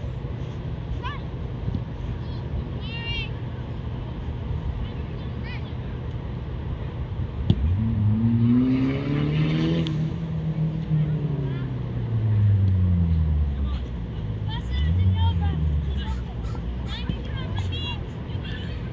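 Young children shout in high voices across an open field.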